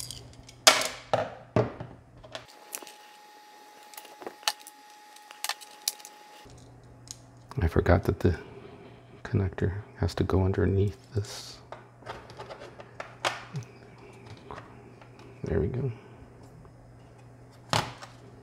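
Keyboard keys rattle as a keyboard is handled.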